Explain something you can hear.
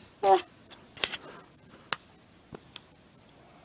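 Fingers tap and rustle very close by.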